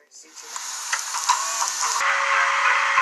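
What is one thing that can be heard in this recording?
Tape static hisses loudly from a television speaker.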